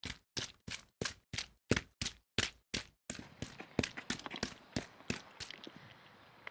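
Quick footsteps run over the ground.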